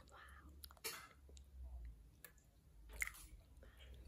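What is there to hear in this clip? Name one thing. Broth splashes softly as it is spooned into a bowl.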